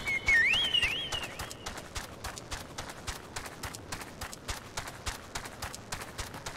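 Footsteps patter quickly on stone.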